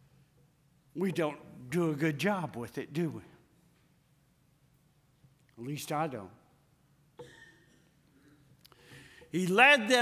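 A middle-aged man preaches with animation through a microphone, pausing between phrases.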